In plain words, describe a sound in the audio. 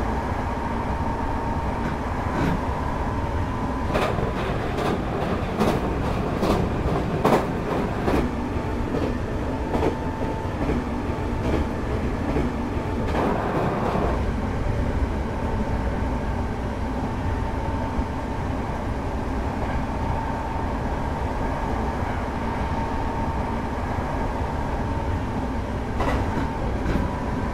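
A train rumbles steadily along the rails at speed.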